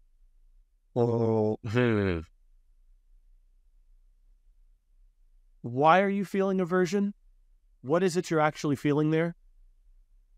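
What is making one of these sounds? A man speaks with animation over an online call, close to a microphone.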